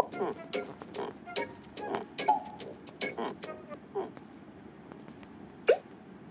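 Short cartoon sound effects pop and chime.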